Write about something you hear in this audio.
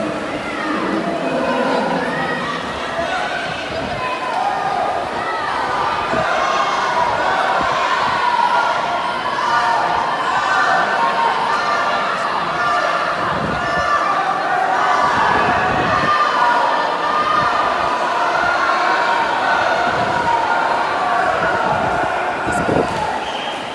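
A crowd cheers and shouts throughout a large echoing hall.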